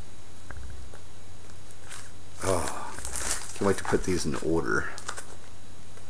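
A plastic sleeve crinkles as a magazine is handled.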